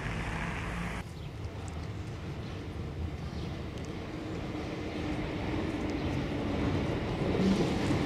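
A tram approaches from a distance.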